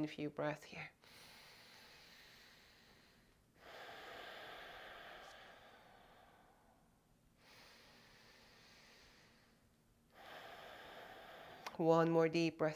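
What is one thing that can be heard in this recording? A young woman breathes in and out slowly and deeply.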